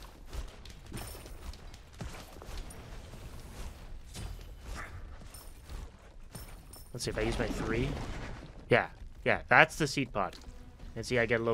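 Game sound effects chime and crackle.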